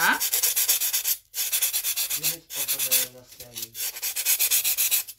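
Sandpaper rubs briskly back and forth in quick strokes.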